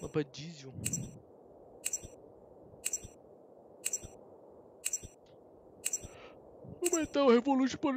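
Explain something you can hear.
A countdown timer beeps once a second.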